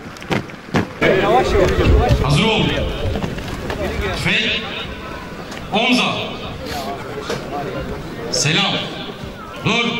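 A group of young men shout together loudly outdoors.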